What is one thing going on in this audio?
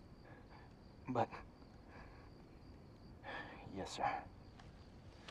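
A man answers curtly from a short distance.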